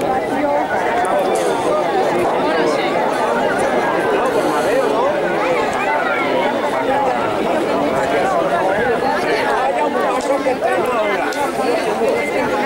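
A large crowd of men shouts and cheers loudly outdoors.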